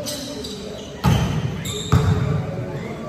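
A volleyball is hit with sharp slaps that echo through a large hall.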